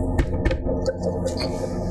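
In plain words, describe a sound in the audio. A man gulps a drink.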